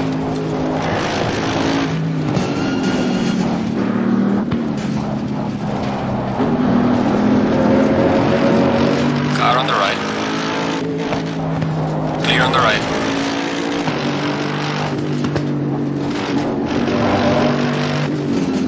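A racing car engine roars, its pitch rising and falling as it shifts gears.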